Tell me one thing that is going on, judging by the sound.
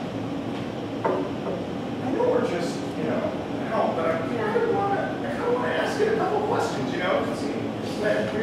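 A man speaks with animation on a stage, heard from a distance.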